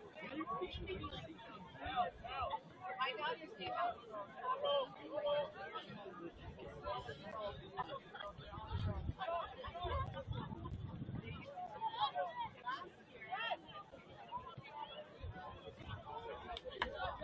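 A crowd of spectators and players chatter and call out across an open field.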